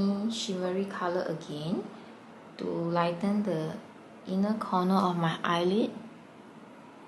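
A young woman speaks calmly and close up.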